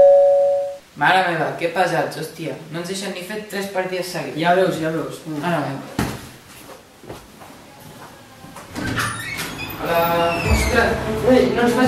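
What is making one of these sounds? A teenage boy talks with animation close by.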